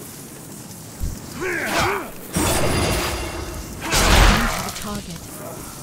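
Swords clash and strike in a short, noisy fight.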